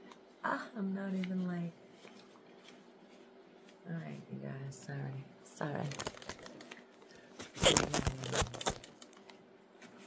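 Rubber gloves rustle and squeak.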